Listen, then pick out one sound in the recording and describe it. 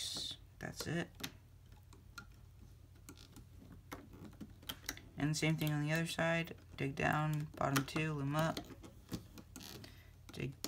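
Rubber bands softly creak and snap as a small plastic hook pulls them.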